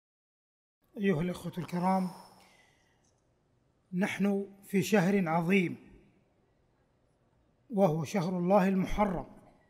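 A man speaks slowly and solemnly into a microphone, with a slight echo.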